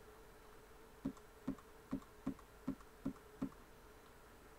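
Soft menu clicks tick in quick succession.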